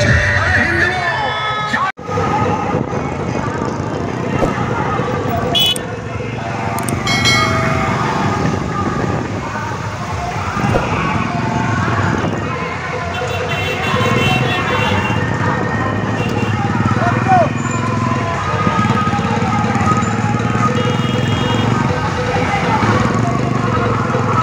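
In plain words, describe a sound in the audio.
A crowd of young men chants and shouts loudly outdoors.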